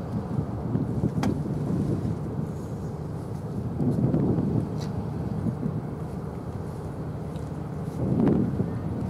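A large ship's engines rumble low and steady across the water.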